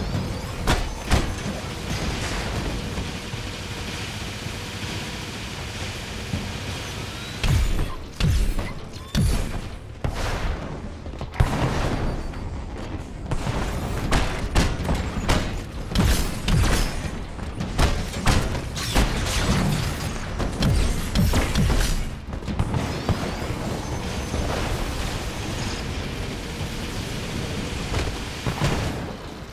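Energy blasts fire and explode in sharp bursts.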